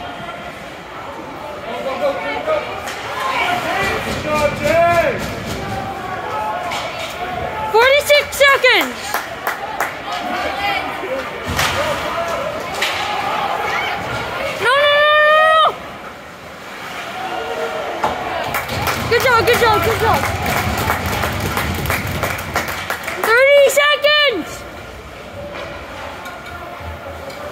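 A crowd of spectators chatters and cheers in a large echoing rink.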